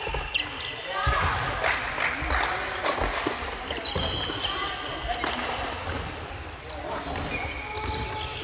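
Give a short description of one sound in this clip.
Badminton rackets strike shuttlecocks in a large echoing hall.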